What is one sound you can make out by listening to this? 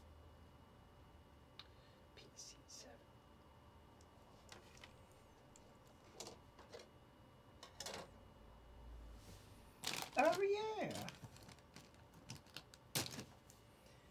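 Small plastic parts click softly.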